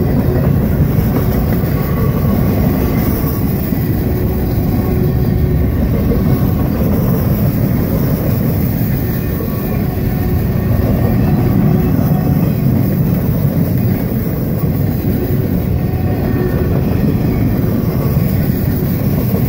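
A railway crossing bell rings steadily.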